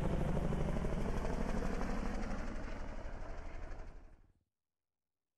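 A helicopter's rotors thump loudly overhead and fade away.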